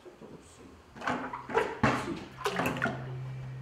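Water splashes as a bucket is emptied into a tank.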